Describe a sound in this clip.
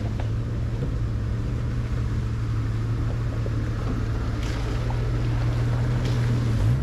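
An off-road truck engine rumbles steadily close by.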